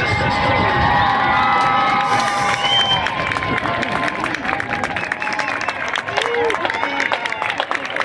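A marching band plays brass and percussion outdoors.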